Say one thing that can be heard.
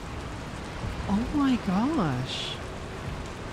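A young woman speaks animatedly into a microphone.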